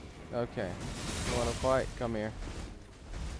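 A crackling burst of magic flares up loudly.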